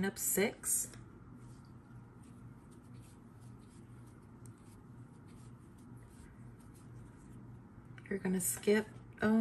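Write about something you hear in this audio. A crochet hook softly ticks and rustles through yarn.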